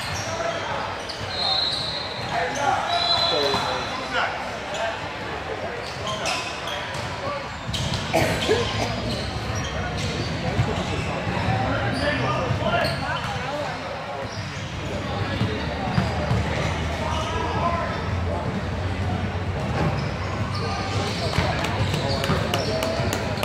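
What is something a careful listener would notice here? Sneakers squeak on a gym floor in a large echoing hall.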